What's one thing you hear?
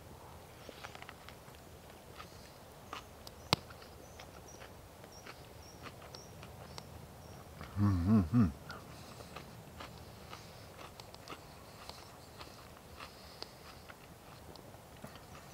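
An older man chews food with soft crunching.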